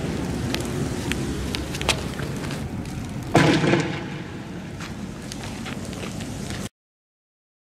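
A smoking canister hisses as it skids along the ground.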